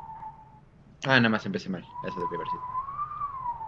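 A young man speaks briefly and loudly into a nearby microphone.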